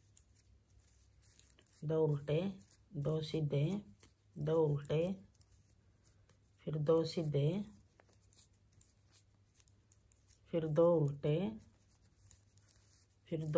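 Knitting needles click and scrape softly against each other.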